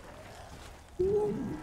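A zombie growls close by.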